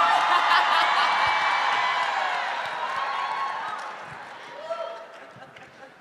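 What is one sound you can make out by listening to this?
A crowd cheers and laughs loudly, then the noise dies down.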